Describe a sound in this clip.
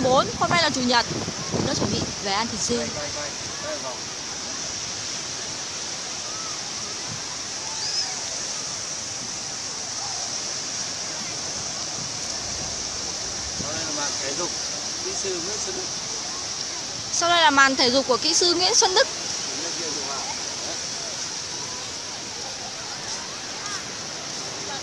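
Small waves wash steadily onto a beach.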